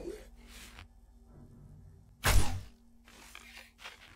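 An arrow is shot from a bow.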